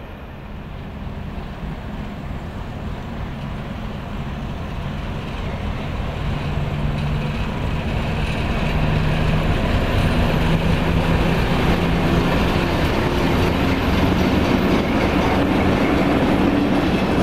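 A diesel locomotive engine rumbles and grows louder as it approaches.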